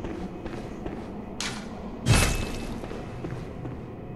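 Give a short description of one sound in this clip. A heavy door thuds open.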